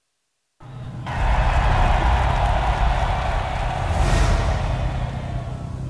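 A car engine revs loudly and roars off.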